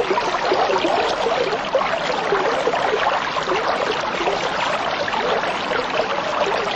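Water bubbles and gurgles steadily in an aquarium filter.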